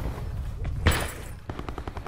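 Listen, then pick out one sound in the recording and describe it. Fists thud in punches.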